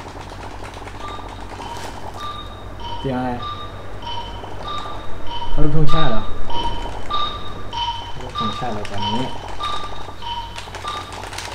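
Short electronic pop sounds play in a quick tune as keys are pressed.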